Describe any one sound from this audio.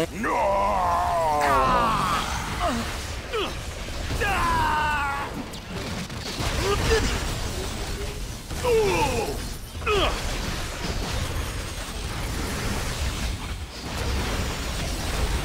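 Magic blasts and explosions crackle and boom during a fight.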